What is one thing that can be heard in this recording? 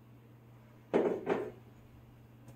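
A plastic jug is set down with a thud on a counter.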